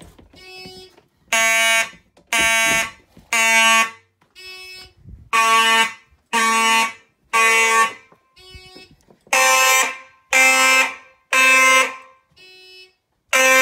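A fire alarm blares in loud, repeating blasts, with quieter tones between them.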